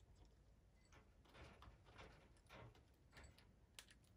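A parrot sips water from a bowl with soft clicks.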